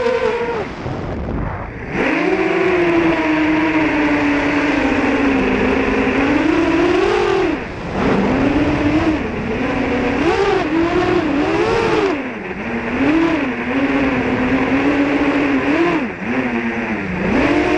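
A drone's motors whine loudly, rising and falling in pitch as it speeds and swoops.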